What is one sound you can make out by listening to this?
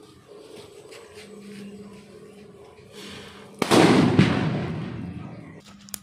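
A lit fuse sizzles and hisses.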